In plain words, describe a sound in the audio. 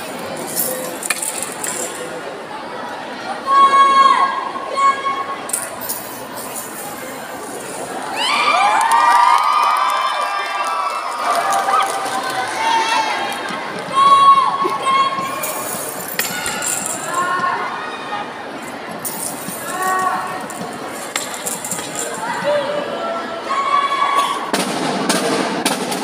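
A crowd of onlookers murmurs and cheers.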